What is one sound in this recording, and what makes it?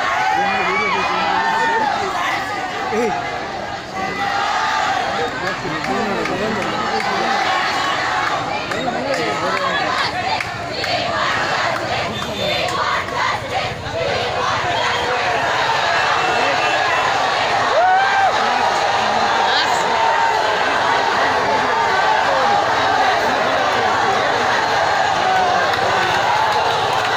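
A large crowd of young people shouts and chants loudly outdoors.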